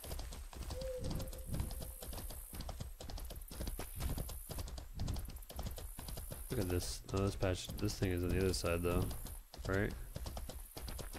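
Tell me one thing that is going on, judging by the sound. Horse hooves thud steadily on grass.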